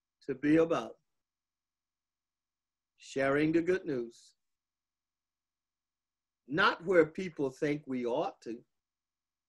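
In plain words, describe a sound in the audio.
An elderly man speaks calmly and clearly into a microphone, with pauses.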